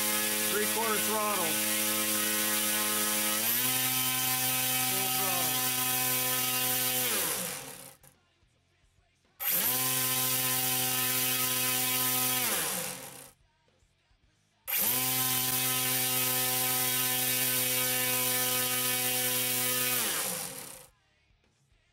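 An electric motor whines steadily at high speed, then winds down, several times over.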